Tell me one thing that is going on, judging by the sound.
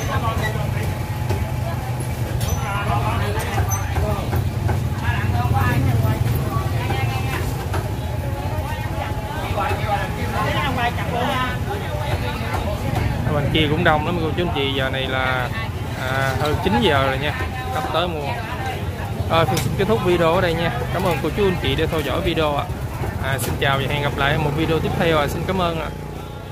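Men and women talk in a small crowd.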